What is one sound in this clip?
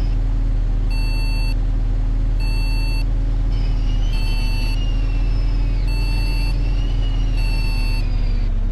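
A bus turn signal beeps at an even pace.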